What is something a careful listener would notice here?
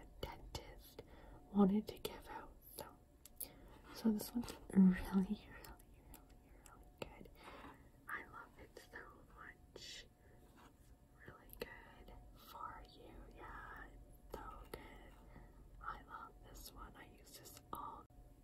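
Fingers tap and rub on a cardboard box.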